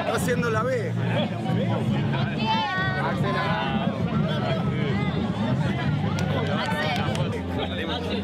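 A crowd of men and women chatter excitedly close by outdoors.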